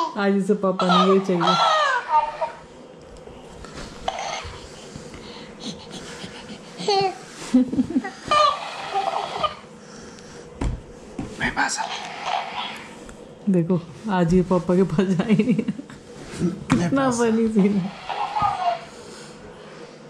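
A man talks playfully and close by to a baby.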